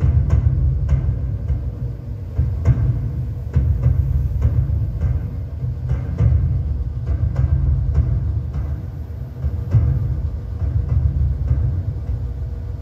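Dramatic music with heavy, booming drum beats plays from a game.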